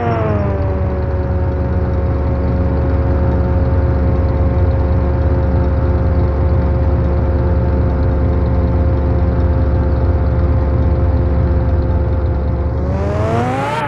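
A sports car engine hums steadily at a low pitch.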